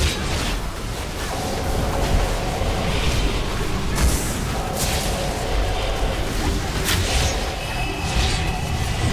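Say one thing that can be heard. Magic spells whoosh and crackle in a busy battle.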